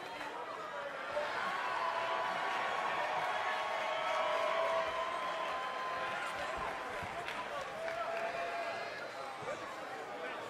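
A large crowd cheers and shouts in a big arena.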